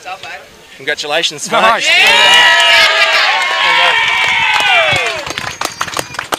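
A crowd cheers and claps outdoors.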